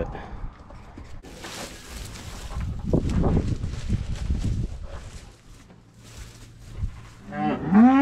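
Hay rustles and scrapes as bales are shifted.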